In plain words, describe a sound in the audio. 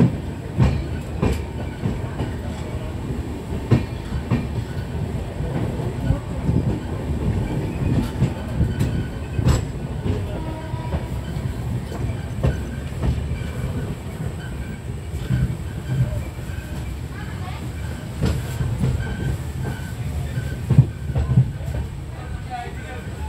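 A moving train rumbles steadily on the tracks.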